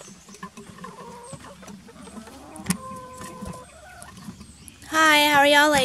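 Hens cluck and squawk close by.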